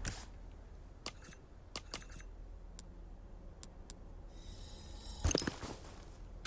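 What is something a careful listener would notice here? Menu clicks tick sharply several times.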